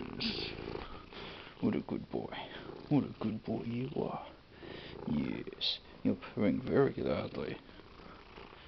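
A young woman talks softly and affectionately close by.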